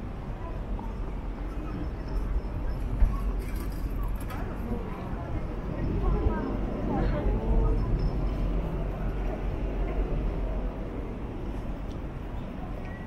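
A murmur of people talking carries from a distance.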